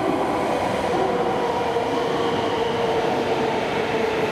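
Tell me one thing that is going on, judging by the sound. Another train rushes past close by.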